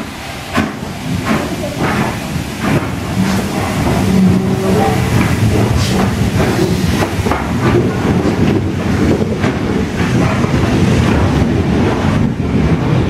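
A steam locomotive chuffs loudly as it pulls past close by.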